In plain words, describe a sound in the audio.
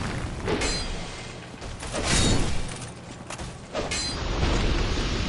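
Swords clash and clang loudly in a fight.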